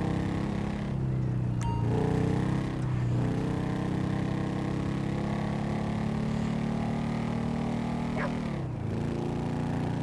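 A motorbike engine revs and shifts gears.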